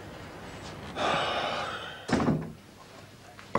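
A second man answers in a worried, questioning voice.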